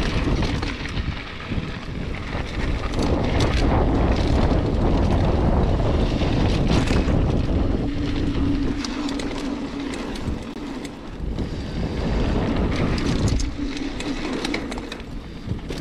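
Bicycle tyres crunch and roll over a dirt trail.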